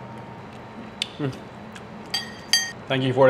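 A fork clinks against a ceramic plate.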